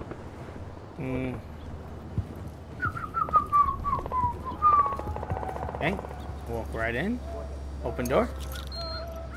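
A man speaks into a close microphone, casually and in short bursts.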